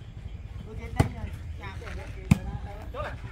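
A hand strikes a volleyball with a sharp slap.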